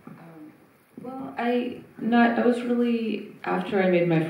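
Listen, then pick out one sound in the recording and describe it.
A woman answers through a microphone.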